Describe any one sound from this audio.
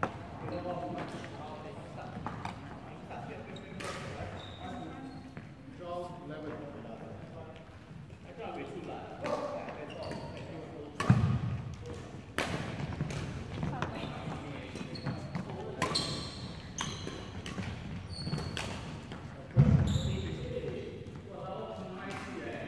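Sports shoes squeak on a wooden court floor.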